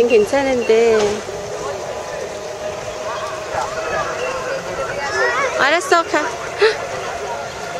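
A young child talks and squeals excitedly nearby.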